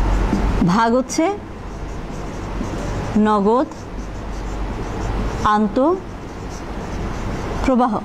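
A marker squeaks in short bursts against a whiteboard.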